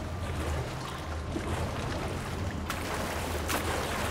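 Water splashes and laps.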